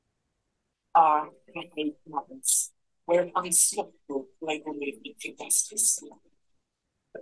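A woman speaks calmly and clearly into a close microphone.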